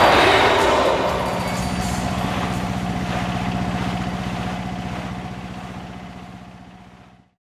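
A boat engine hums steadily and fades away.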